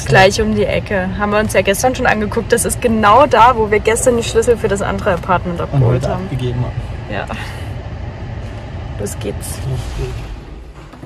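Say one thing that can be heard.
A car engine hums inside a car.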